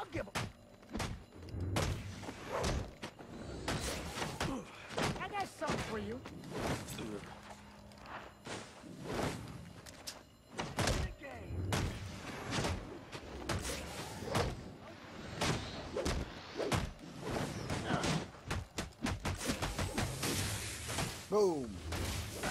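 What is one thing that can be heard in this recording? Punches and kicks land with heavy thuds again and again.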